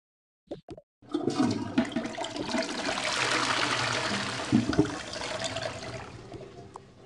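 A toilet flushes with a rushing gush of water.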